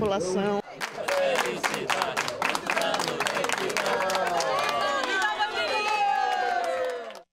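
A group of people sing together.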